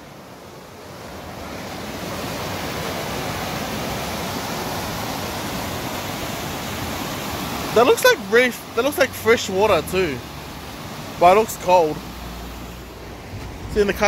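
A stream rushes loudly over rocks.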